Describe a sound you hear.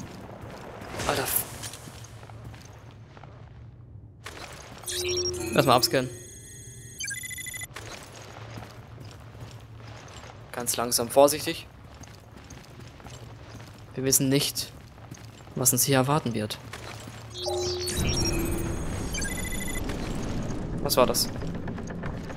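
A young man talks into a headset microphone with animation, in short bursts.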